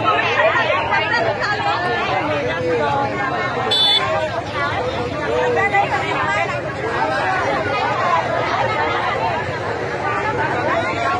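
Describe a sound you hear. A large crowd of men and women talks and shouts excitedly outdoors, close by.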